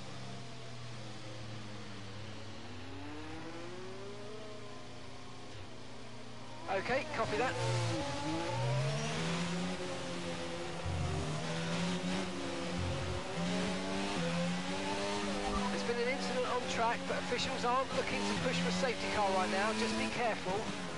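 A racing car engine hums steadily, then roars and whines as it speeds up and shifts gears.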